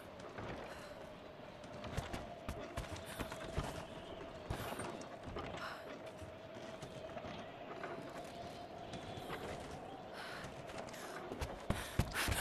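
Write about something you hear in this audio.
Footsteps thud on creaking wooden planks.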